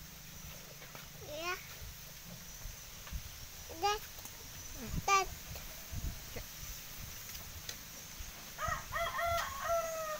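A cow munches grass close by.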